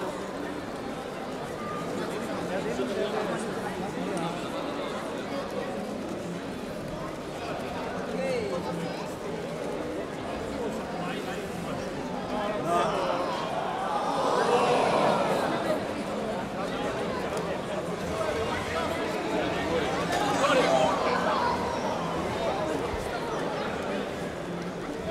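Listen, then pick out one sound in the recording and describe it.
A large indoor crowd murmurs and chatters, echoing in a big hall.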